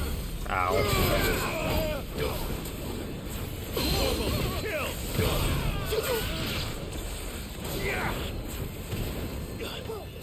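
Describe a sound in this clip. Fiery explosions roar and crackle.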